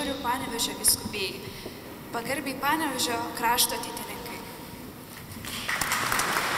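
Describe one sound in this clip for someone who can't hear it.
A young woman speaks into a microphone in a reverberant hall.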